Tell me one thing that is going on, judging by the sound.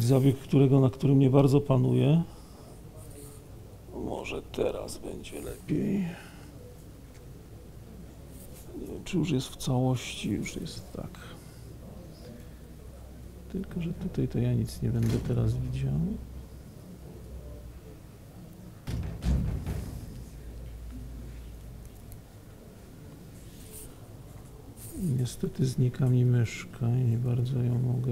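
A middle-aged man speaks calmly into a microphone in a large room, with pauses.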